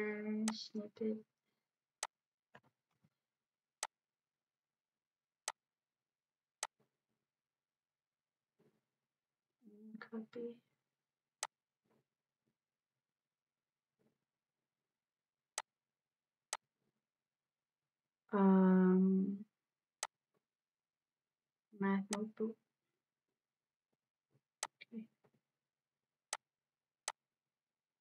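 A computer mouse clicks now and then.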